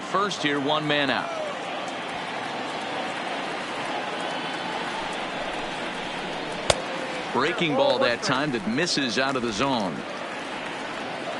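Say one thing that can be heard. A crowd murmurs steadily.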